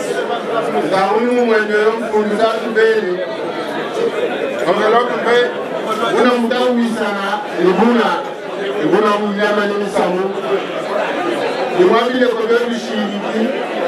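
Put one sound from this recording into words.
A man speaks with animation through a microphone and loudspeaker.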